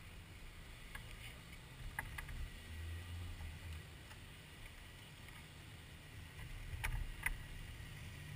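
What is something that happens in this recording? Hard clicks and knocks come from gear being handled.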